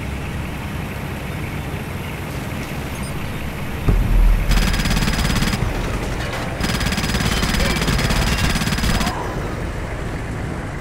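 A heavy armoured vehicle's engine rumbles steadily.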